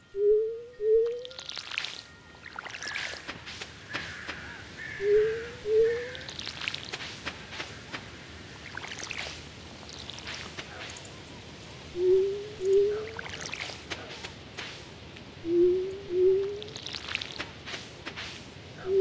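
Short rising pops sound in pairs.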